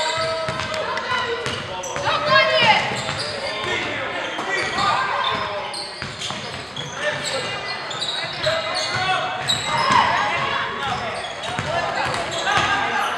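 Spectators chatter and call out in the background.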